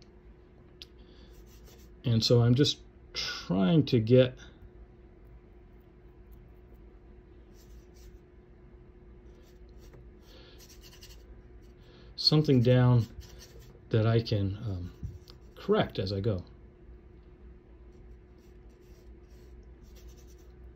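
A paintbrush dabs and strokes softly on canvas.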